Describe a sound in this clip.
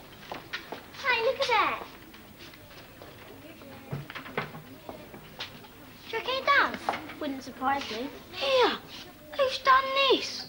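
A young girl speaks excitedly nearby.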